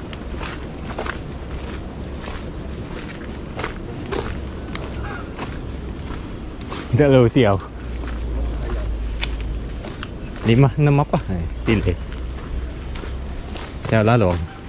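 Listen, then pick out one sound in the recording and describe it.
Footsteps crunch steadily on a dirt path with dry leaves.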